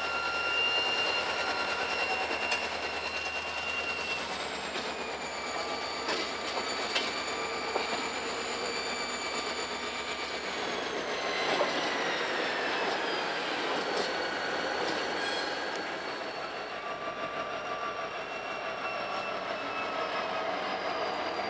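A diesel locomotive rumbles as it passes close by.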